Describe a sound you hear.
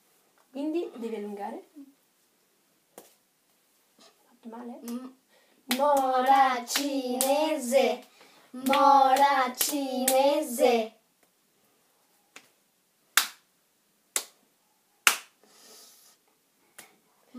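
Children clap their hands together in a quick rhythm.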